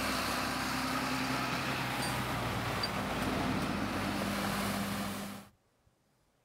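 A tractor engine roars as a tractor drives past close by.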